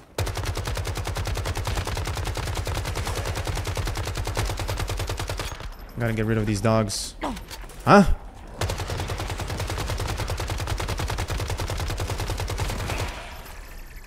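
Rapid automatic gunfire rattles.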